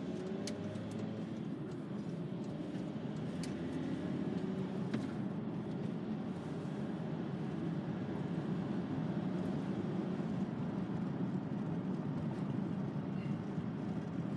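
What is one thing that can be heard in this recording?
A car engine hums steadily from inside as the car drives along.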